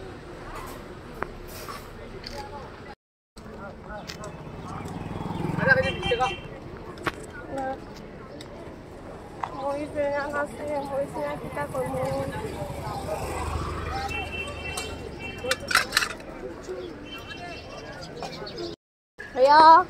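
A crowd chatters outdoors at a busy market.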